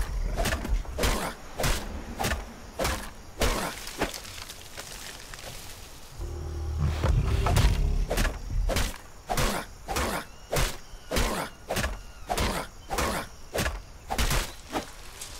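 An axe chops into wood with sharp, rapid blows.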